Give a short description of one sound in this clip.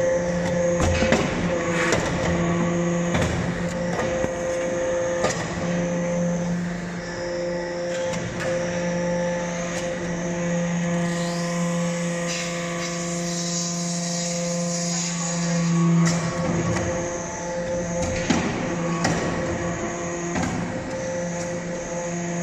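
Metal briquettes knock and clatter as they are pushed out.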